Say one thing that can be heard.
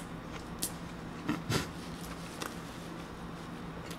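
Paper tissue crinkles against a face.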